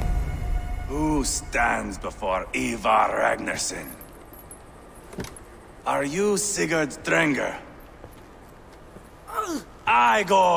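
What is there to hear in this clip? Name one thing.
A man speaks loudly and mockingly, close by.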